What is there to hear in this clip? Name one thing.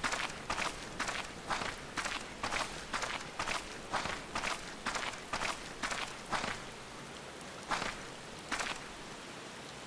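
Footsteps crunch steadily on gravel, then slow and stop.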